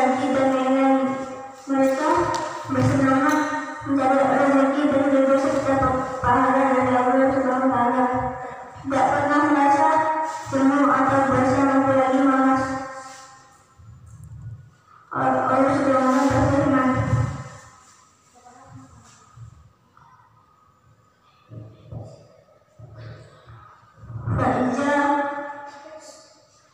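A boy chants in a long, steady voice in an echoing hall.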